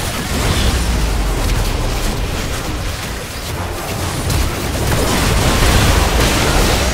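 Game spells and weapons clash and burst in a rapid fight.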